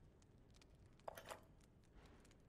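A small stone clicks into place.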